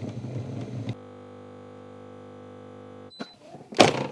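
A coffee machine hums steadily as it froths milk.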